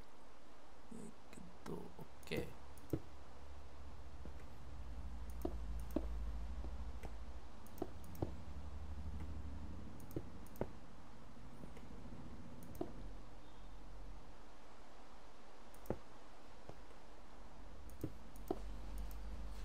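Stone blocks are set down with short, dull knocks.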